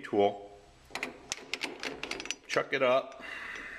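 Metal parts clink and tap together.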